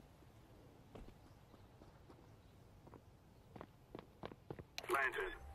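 Footsteps thud on hard ground.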